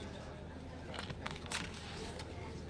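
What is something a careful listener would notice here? Papers rustle close to a microphone.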